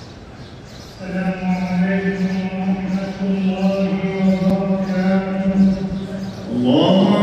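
A man chants in a deep, drawn-out voice through a loudspeaker, echoing in a large open space.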